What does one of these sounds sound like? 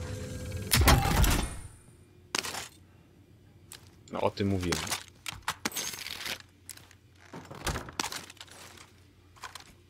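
Guns clack and rattle as weapons are picked up.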